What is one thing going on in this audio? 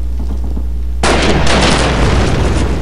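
A rifle fires a loud shot that echoes and slowly fades.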